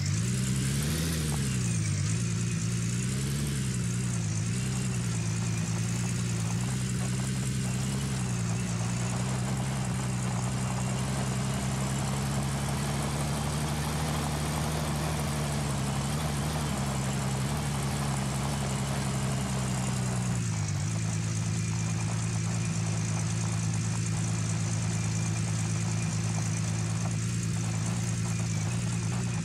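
A truck engine hums steadily, its pitch rising and falling with speed.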